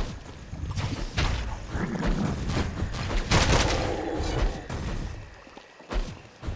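Electronic sword slashes and energy blasts crackle in quick bursts.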